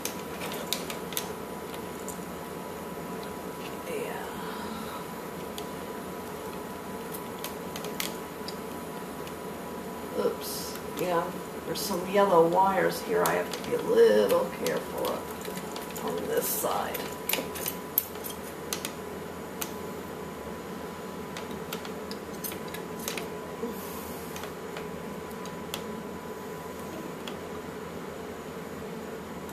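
Small plastic parts click and tap as hands fiddle with a toy.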